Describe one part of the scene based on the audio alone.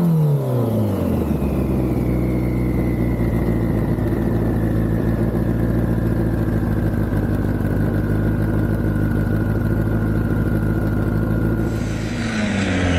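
A car engine idles with a steady, low rumble.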